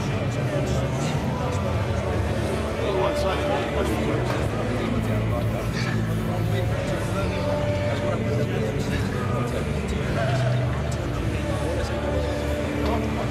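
Many men talk over one another nearby, in a busy crowd.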